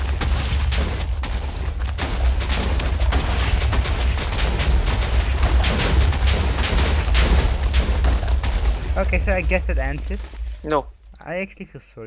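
Explosions rumble and crackle in quick succession.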